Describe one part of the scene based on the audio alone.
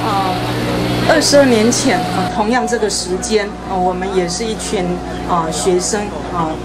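A crowd of men and women shouts and chants loudly nearby.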